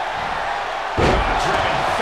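A body slams onto a wrestling mat with a heavy thud.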